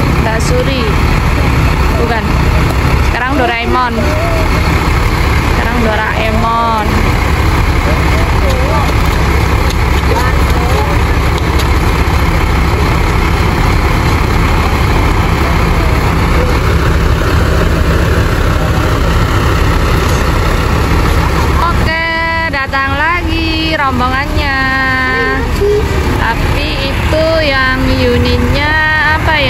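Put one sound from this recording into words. A bus engine idles with a deep, steady rumble outdoors.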